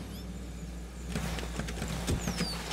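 A car crashes into a tree with a thud and crunch.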